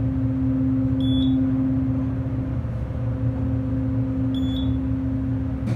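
An elevator chime beeps briefly as a floor passes.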